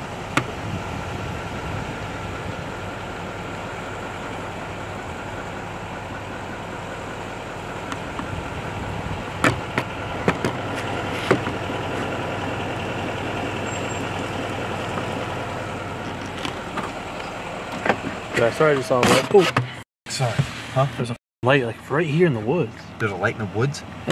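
Branches scrape and brush against a vehicle.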